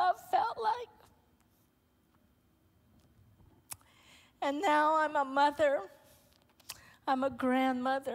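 A woman speaks emotionally through a microphone, her voice carrying in a large room.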